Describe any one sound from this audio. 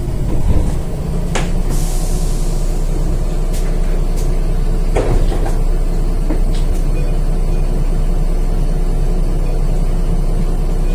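A bus engine idles steadily while the bus stands still.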